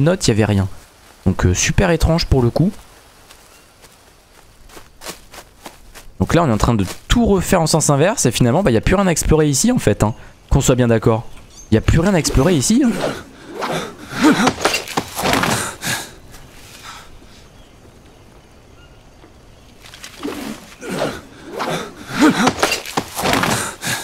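Footsteps crunch through dry leaves and undergrowth.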